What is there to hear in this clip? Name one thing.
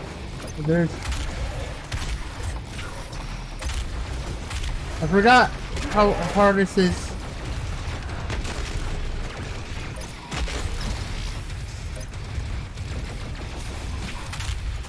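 A shotgun fires in rapid blasts.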